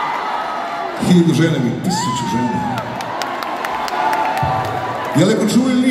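Claps ring out from the crowd.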